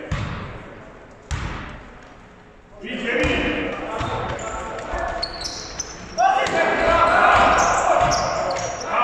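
A ball bounces on a wooden floor in a large echoing hall.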